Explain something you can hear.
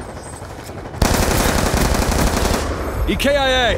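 Rapid gunfire rattles loudly.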